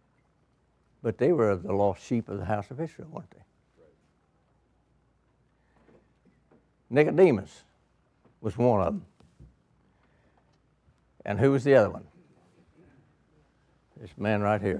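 An elderly man lectures calmly into a microphone, with pauses between phrases.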